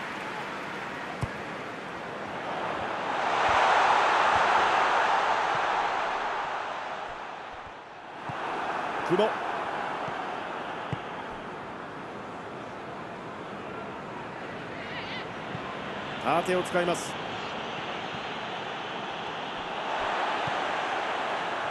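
A stadium crowd roars steadily, swelling loudly at times.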